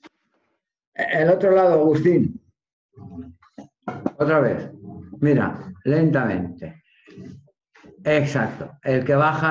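A man speaks loudly and firmly through an online call.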